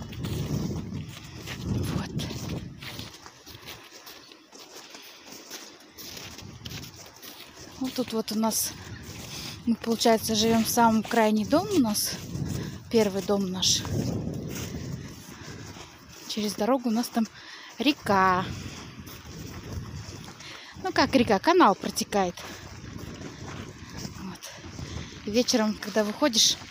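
Footsteps crunch on packed snow.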